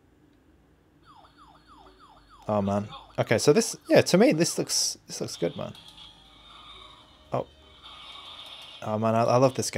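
Arcade game sound effects play from a small handheld speaker.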